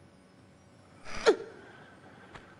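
A woman grunts with effort as she jumps and climbs.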